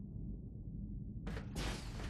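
A robot hovers with a low mechanical hum.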